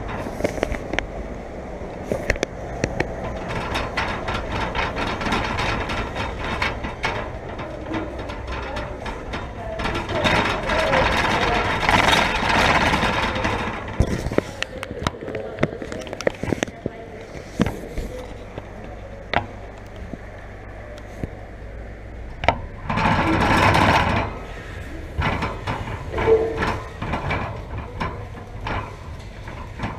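Cart wheels rumble over the ground.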